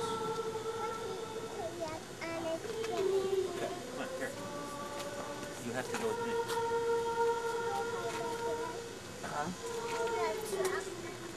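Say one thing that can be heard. A group of young women sing together in long held notes.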